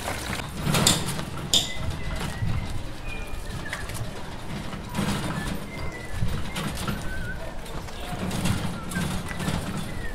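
A handcart rolls and rattles over pavement.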